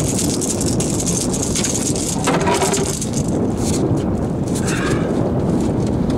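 A fish flaps and slaps against a boat deck.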